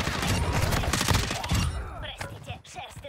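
Gunfire rattles loudly in quick bursts.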